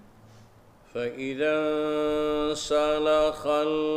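An elderly man chants loudly in a long, drawn-out voice through a microphone.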